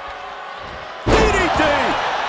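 A body slams onto a wrestling mat with a heavy thud.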